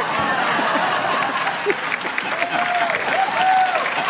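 A man laughs heartily.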